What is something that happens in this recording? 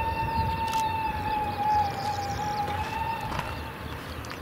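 A steam locomotive whistle blows a long steady note, then stops.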